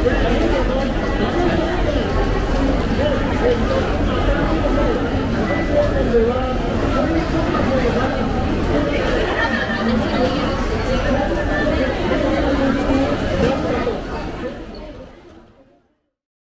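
Footsteps shuffle and tap on a hard floor.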